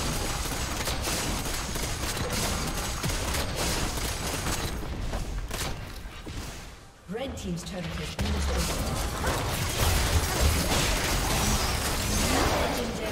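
Game spell effects crackle and whoosh during a fantasy battle.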